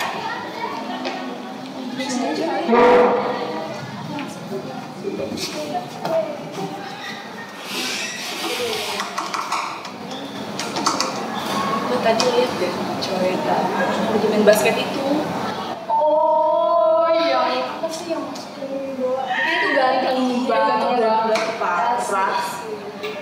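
Young women talk with animation nearby.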